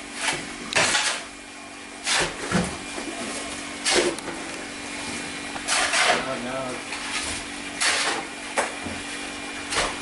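A shovel scrapes and splashes through wet mud in bursts.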